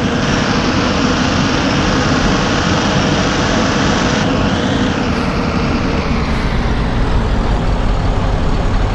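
A bus engine rumbles steadily as the bus drives along a road.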